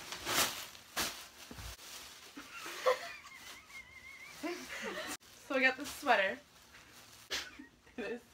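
Fabric rustles as a girl pulls a blanket from a bag.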